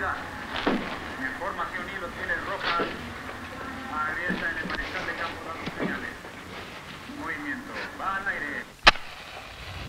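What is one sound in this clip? A man speaks tensely nearby.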